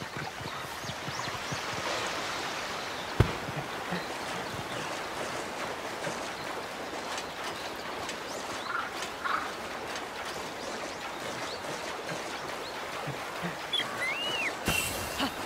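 Water splashes as a figure wades through a rushing stream.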